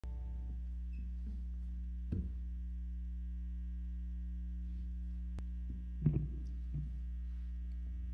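A low electric hum from a guitar amplifier drones steadily.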